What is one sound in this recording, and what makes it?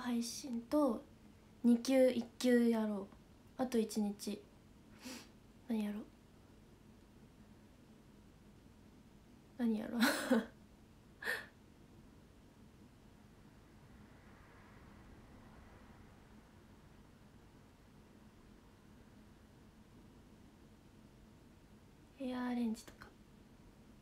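A young woman talks close to a microphone in short bursts, with long pauses.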